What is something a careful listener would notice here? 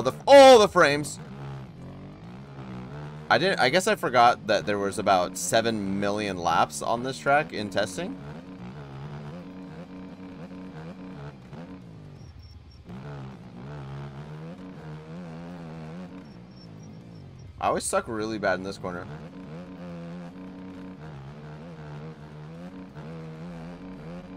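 A dirt bike engine drones and revs steadily.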